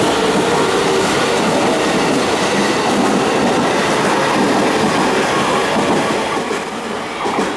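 A train rushes past loudly, close by.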